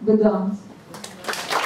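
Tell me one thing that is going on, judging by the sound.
A woman speaks briefly into a microphone.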